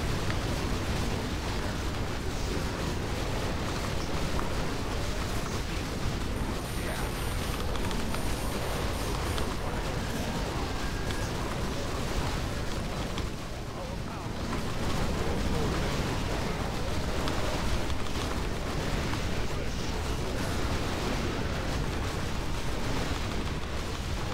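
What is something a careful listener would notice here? Game battle sounds of clashing weapons and explosions play densely.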